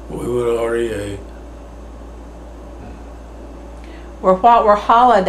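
An elderly man speaks slowly and calmly, close by.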